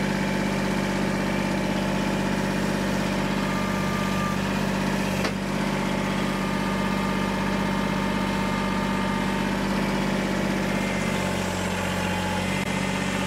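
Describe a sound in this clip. A tractor engine hums steadily in the distance.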